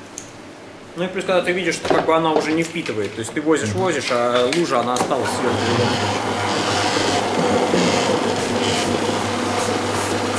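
A floor polishing machine hums steadily as it spins.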